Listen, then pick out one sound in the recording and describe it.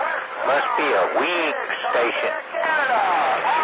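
Warbling, whistling tones sound from a radio receiver.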